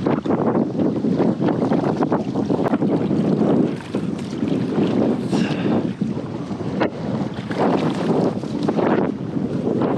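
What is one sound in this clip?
A paddle dips and splashes in water.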